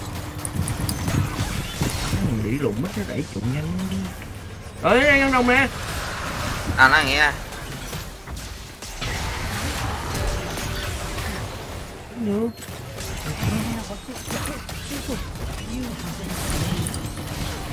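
Magical blasts and hits crackle in a video game battle.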